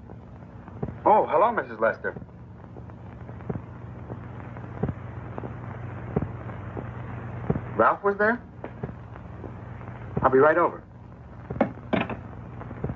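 A young man speaks into a telephone in short bursts.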